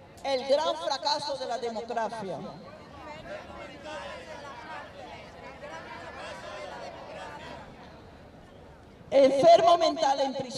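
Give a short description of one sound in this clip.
An elderly woman speaks loudly into a microphone, heard through a loudspeaker outdoors.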